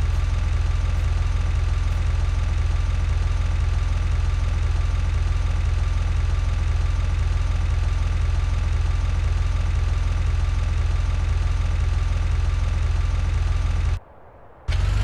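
A car engine drones loudly and steadily.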